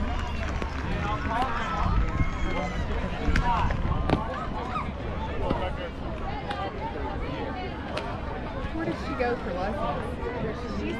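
Young women call out and chatter across an open field.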